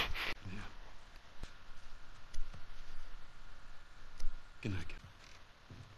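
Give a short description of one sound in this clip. A man speaks softly and warmly, close by.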